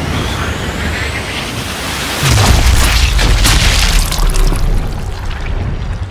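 A rifle bullet whooshes through the air and strikes with a heavy, slowed-down thud.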